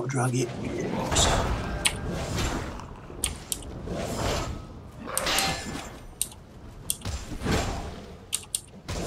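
A spell whooshes with a magical shimmer.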